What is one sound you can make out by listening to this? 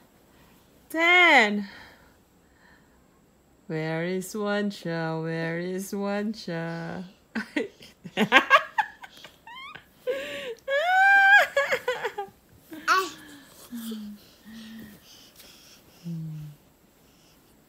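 A toddler squeals and giggles close by.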